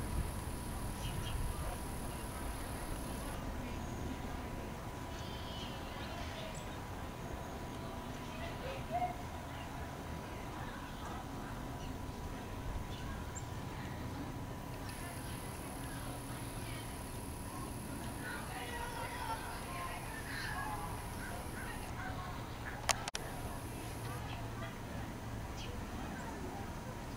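A light breeze blows outdoors.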